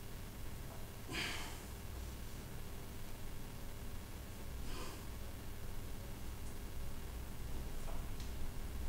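A man breathes out hard in short bursts.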